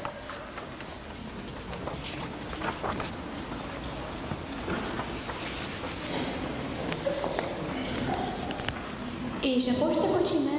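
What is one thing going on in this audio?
Children talk and shuffle about in a large echoing hall.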